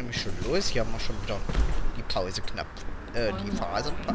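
Bus doors hiss and clatter open.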